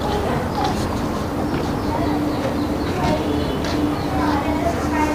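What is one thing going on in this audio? Footsteps pad softly across stone paving.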